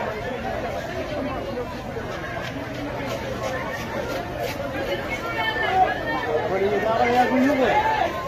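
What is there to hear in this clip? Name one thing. A crowd of men and women chatter and call out loudly nearby.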